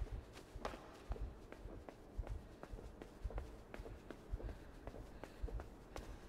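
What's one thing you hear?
Light footsteps patter quickly across a hard floor.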